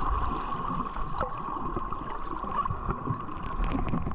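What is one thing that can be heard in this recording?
Air bubbles gurgle and fizz as a swimmer kicks nearby.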